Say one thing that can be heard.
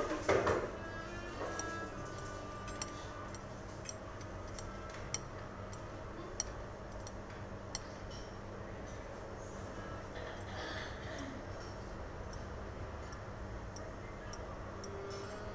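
A thin stick taps lightly on a ceramic plate.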